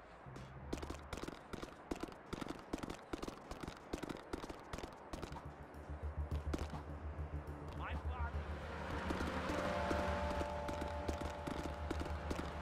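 Hooves clop rapidly on pavement as a horse gallops.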